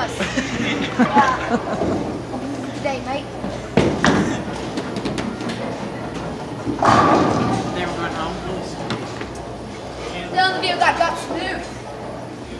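Bowling balls rumble and pins clatter in a large echoing hall.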